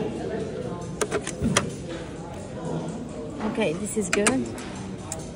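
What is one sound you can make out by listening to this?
A small object knocks against a metal tray inside a machine.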